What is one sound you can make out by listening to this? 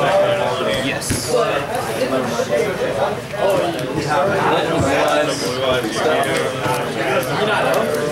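A card box is set down on a table with a light thud.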